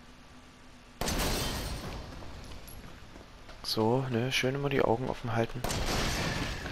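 A gun fires loudly with a booming echo.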